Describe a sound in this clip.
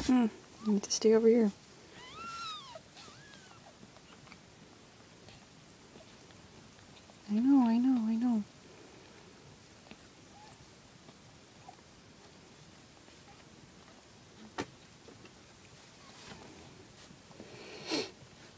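Kittens mew loudly and plaintively close by.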